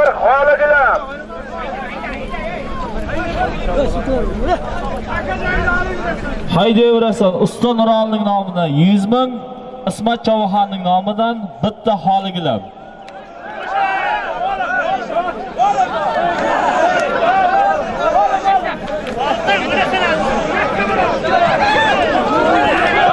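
A crowd of men shouts and calls out close by, outdoors.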